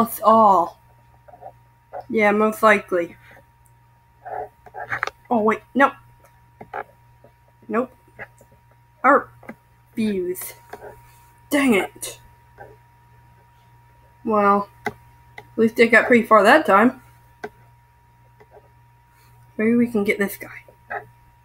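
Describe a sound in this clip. A teenage boy talks in short, animated bursts into a webcam microphone.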